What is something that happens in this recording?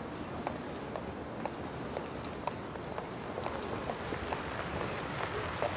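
Footsteps tap on pavement at a steady pace.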